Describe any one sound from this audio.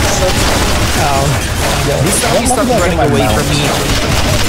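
Zombies growl and snarl nearby.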